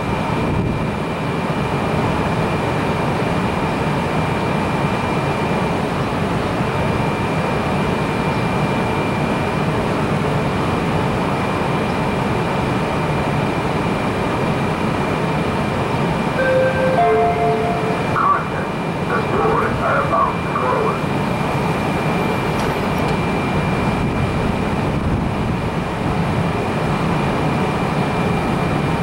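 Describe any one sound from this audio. A train idles close by with a steady low rumble and hum.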